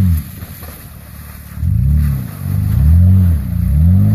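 Tyres splash and churn through thick mud.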